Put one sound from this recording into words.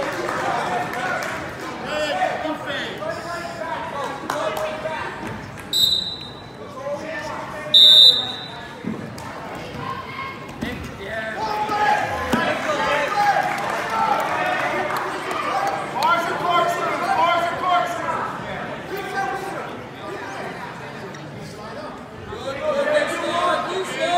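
A crowd of spectators shouts and cheers in an echoing gym.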